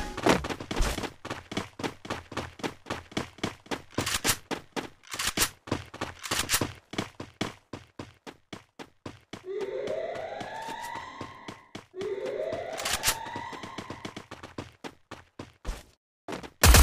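Quick footsteps run steadily over hard ground.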